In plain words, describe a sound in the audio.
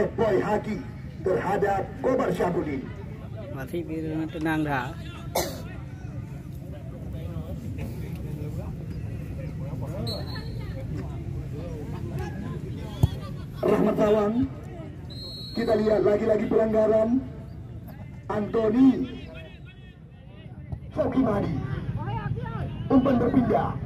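Spectators chatter and shout from the sidelines.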